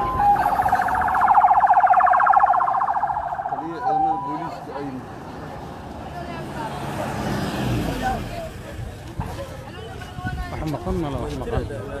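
A pickup truck drives past on the road.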